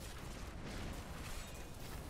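Lightning zaps and crackles in sharp bursts.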